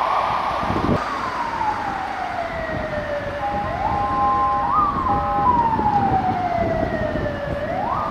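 A siren wails slowly in the distance.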